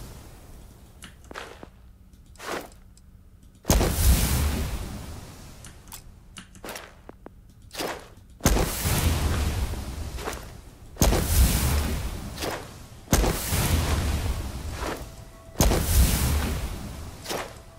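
Short electronic clicks tick now and then.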